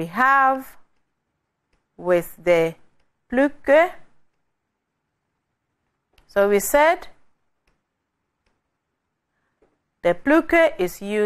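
A young woman speaks calmly and clearly through a microphone, in short phrases with pauses.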